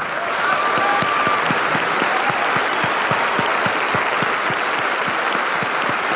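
A young woman claps her hands close to a microphone.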